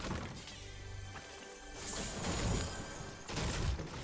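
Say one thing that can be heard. A treasure chest opens with a shimmering chime.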